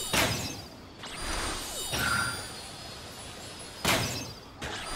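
Magic arrows burst with bright whooshing blasts.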